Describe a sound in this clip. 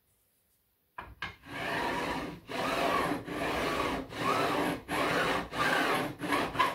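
A sanding block rubs back and forth over wood in steady, rasping strokes.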